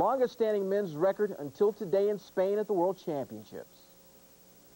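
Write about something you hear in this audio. A man speaks clearly and steadily into a microphone, like a news presenter.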